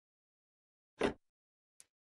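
A game menu opens with a sharp click.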